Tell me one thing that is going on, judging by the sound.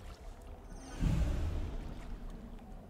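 A game menu chime sounds as an unlock completes.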